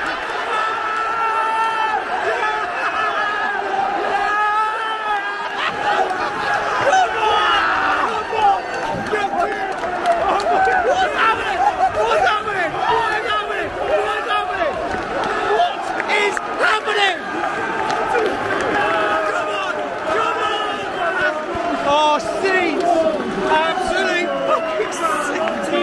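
A large crowd of men sings and chants loudly in an echoing stadium.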